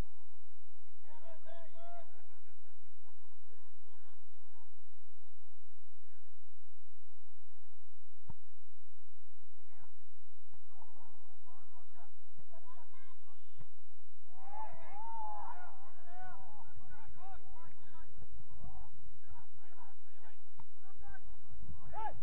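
Young men shout to each other across an open field, heard from a distance.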